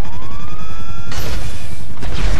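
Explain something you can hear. A rocket launcher fires with a loud whoosh.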